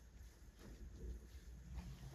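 Hands rub softly against bare skin.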